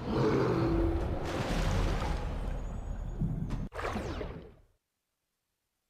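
Water rushes and bubbles as a shark swims under the surface.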